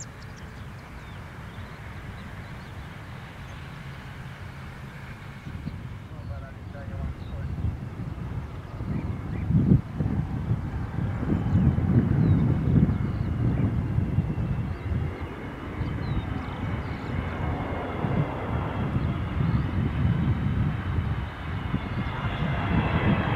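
A jet airliner's engines roar as it takes off.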